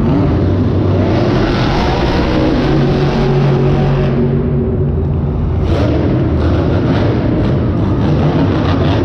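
Monster truck engines roar loudly in a large echoing arena.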